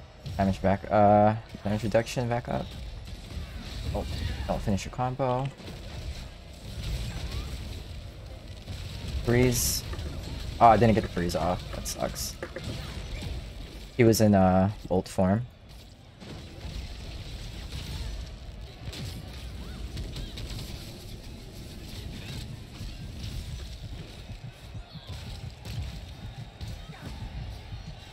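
Video game spell effects crackle and boom.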